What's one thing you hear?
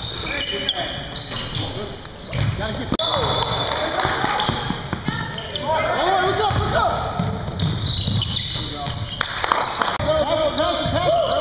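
A basketball bounces on a wooden floor with dull thumps.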